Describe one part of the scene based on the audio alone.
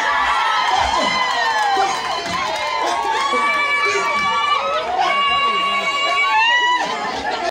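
A crowd of women sings loudly nearby.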